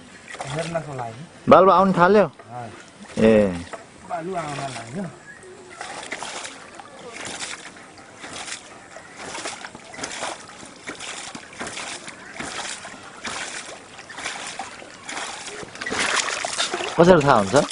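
Water splashes into a tub.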